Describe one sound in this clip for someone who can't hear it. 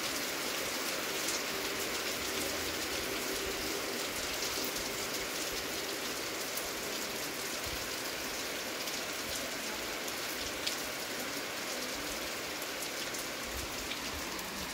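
Wind rustles through palm leaves and trees.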